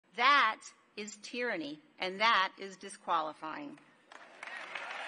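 A woman speaks firmly into a microphone.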